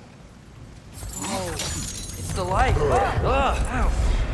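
An axe whooshes through the air and strikes with a loud crash.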